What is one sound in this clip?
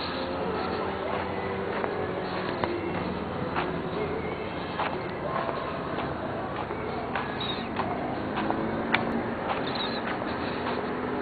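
Traffic hums along a nearby street.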